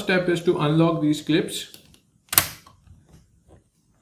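A plastic latch on a laptop's underside clicks as it is slid open.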